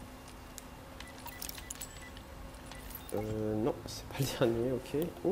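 An electronic keypad beeps.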